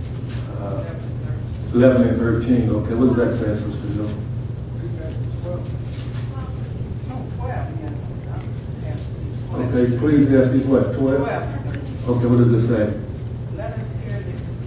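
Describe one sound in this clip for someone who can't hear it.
An elderly man speaks steadily into a microphone, heard through loudspeakers in an echoing room.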